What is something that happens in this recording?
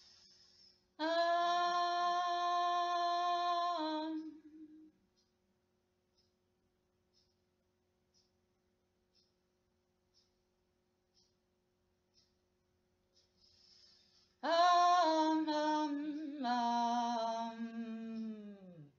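A young woman sings long, held notes close by, trailing off at the end of each phrase.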